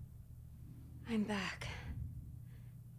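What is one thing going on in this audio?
A young woman speaks quietly and close by.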